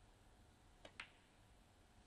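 A snooker ball clacks against another ball.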